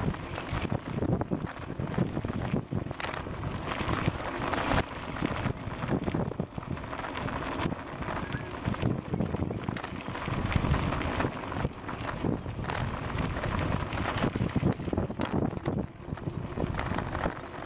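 Bicycle tyres roll over a gravel path.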